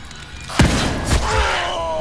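A gunshot bangs.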